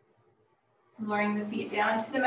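A woman speaks calmly into a nearby microphone.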